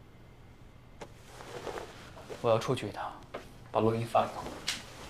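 Cloth rustles as a jacket is handled.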